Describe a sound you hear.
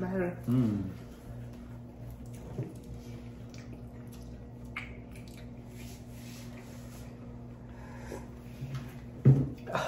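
A man crunches tortilla chips close to a microphone.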